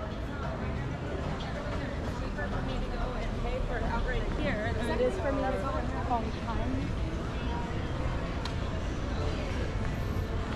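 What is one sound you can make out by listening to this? A low outdoor street rumble hums steadily.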